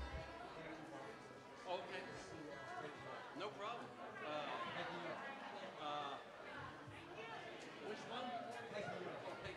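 A band plays lively music with strummed guitars and bass.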